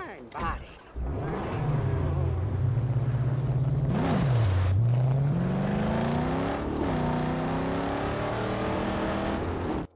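A car engine starts and revs loudly, rising and falling in pitch.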